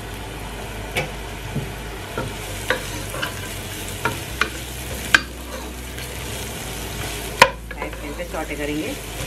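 A wooden spatula scrapes and knocks against a pot.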